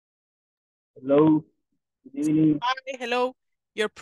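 A young man speaks over an online call.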